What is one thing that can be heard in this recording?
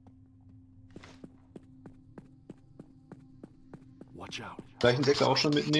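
Footsteps run quickly across hard pavement.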